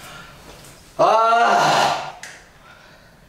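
A young man cries out loudly close by, his voice sliding in pitch.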